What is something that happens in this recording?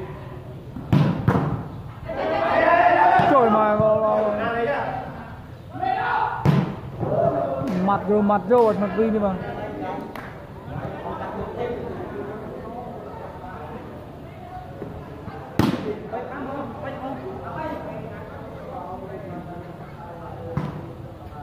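Young men shout and call out during play.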